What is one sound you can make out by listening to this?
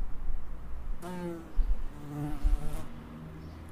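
A bumblebee buzzes.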